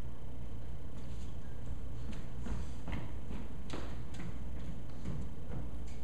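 Footsteps cross a hard floor.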